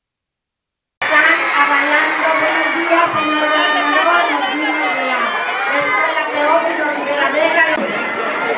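A large crowd of young people cheers and shouts outdoors.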